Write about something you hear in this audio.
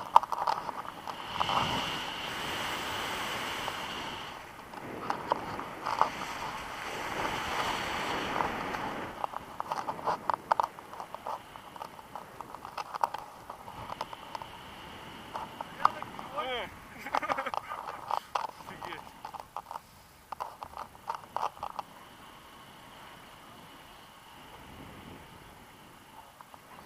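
Wind rushes and buffets loudly against a microphone in flight.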